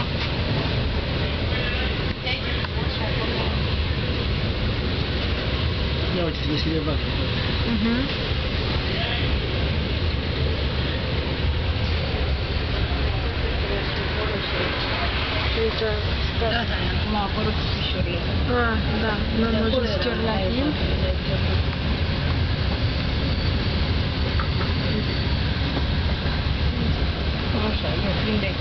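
Wheels clatter over rail joints.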